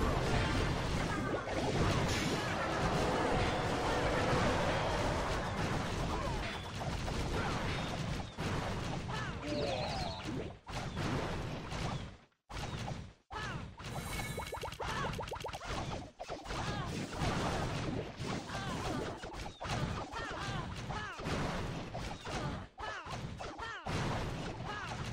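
Battle sound effects from a video game clash and crash.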